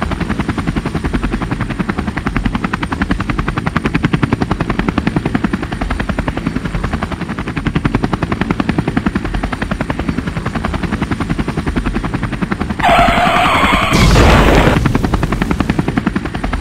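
A helicopter's rotor chops rapidly overhead.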